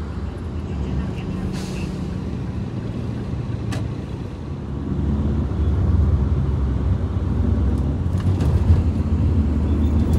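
Motorcycle engines hum past close by.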